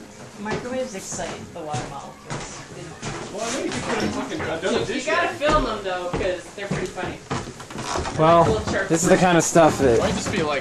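A young person talks close by with animation.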